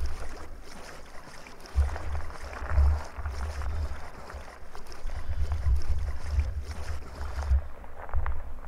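Water sloshes and laps gently against walls in an echoing space.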